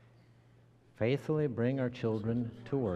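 A man sings a sung prayer through a microphone in a large echoing hall.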